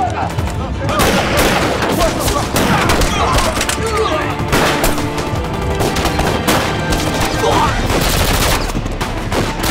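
Gunshots crack sharply.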